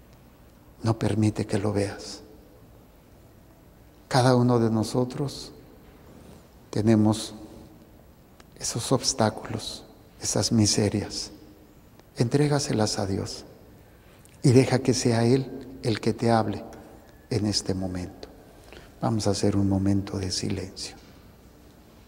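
An elderly man speaks calmly through a microphone in an echoing room, in short phrases with pauses.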